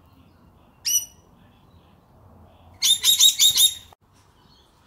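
Parrots screech loudly in short, shrill bursts.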